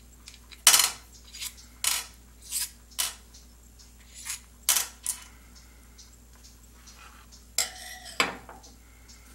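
Small metal parts clink and tap against each other and a metal surface.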